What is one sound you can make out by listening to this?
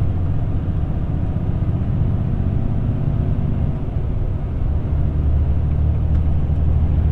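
A vehicle drives steadily along a road, its engine and tyres rumbling low.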